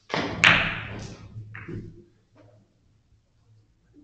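Billiard balls knock together and against the cushions.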